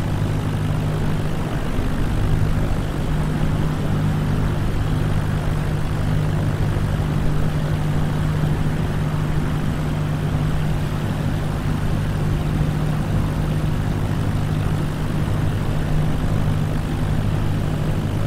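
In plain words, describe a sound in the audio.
Wind rushes past a small plane.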